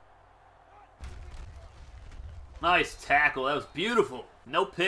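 Football players crash together with a thud of pads.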